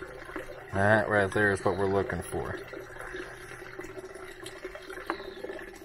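Liquid pours from a jar onto wet leaves.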